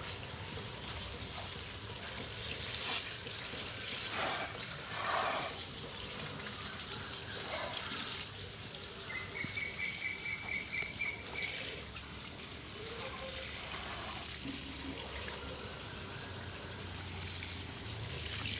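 Water from a watering can sprinkles and patters onto soil and plant pots.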